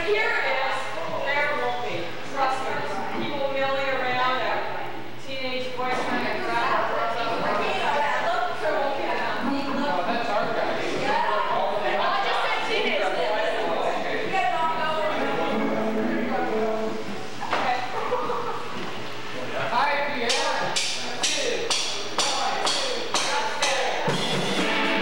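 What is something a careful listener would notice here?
A band plays along with guitars and drums.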